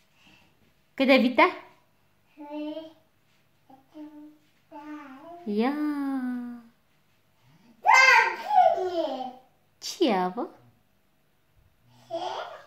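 A toddler babbles and calls out nearby.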